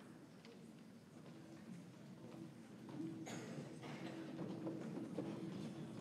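A crowd of young people murmurs and shuffles quietly.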